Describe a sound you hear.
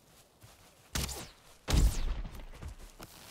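Heavy thuds and crashes boom close by.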